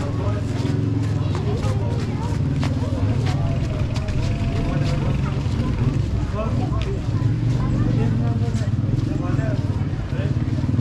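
A crowd of men and women murmur and talk nearby outdoors.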